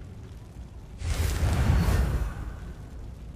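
A video game plays a loud whooshing sound effect as a menu opens.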